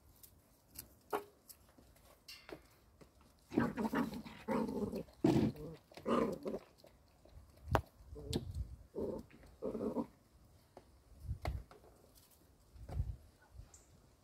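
A puppy rustles and scratches at a cardboard box.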